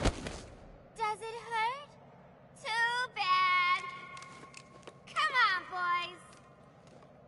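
A young woman speaks in a high, playful, sing-song voice close by.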